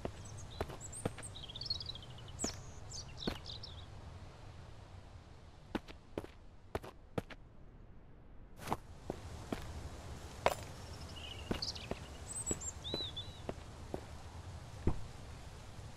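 Footsteps crunch on dry leaves and dirt.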